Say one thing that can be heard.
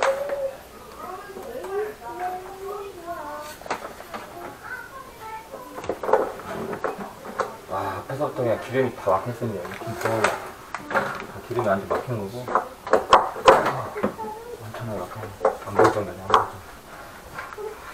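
A plastic cable rustles and clicks as it is coiled.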